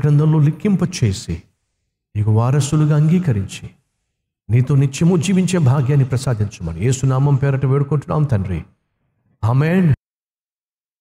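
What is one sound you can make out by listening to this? A man speaks earnestly into a microphone.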